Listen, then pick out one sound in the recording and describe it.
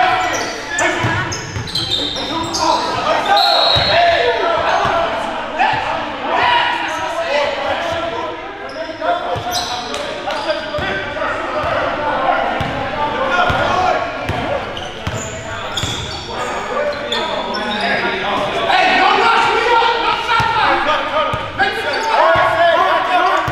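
Sneakers squeak sharply on a wooden court in a large echoing gym.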